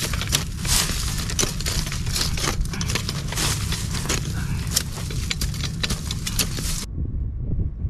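A hoe scrapes and chops into dry soil.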